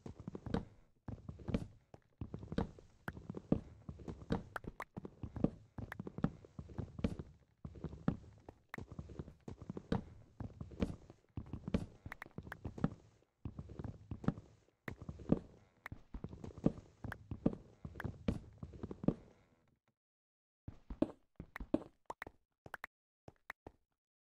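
A pickaxe chips repeatedly at stone and wood with short crunching knocks.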